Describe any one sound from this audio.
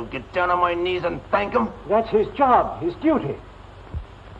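A young man speaks angrily and loudly.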